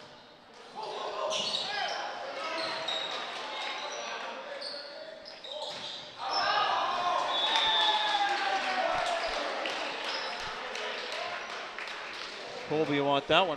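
A crowd cheers in an echoing gym.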